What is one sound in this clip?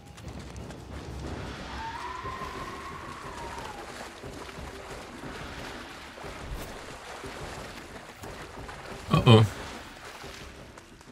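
Footsteps splash quickly through shallow water.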